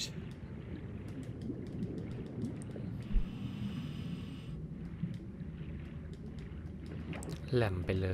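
Water churns and rumbles with a low, steady swirl.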